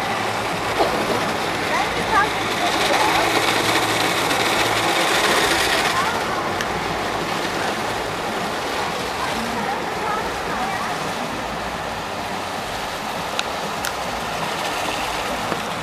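Rotating car wash brushes swish and slap against an SUV.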